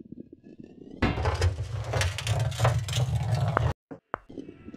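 A heavy ball rolls along metal rails with a loud rumble.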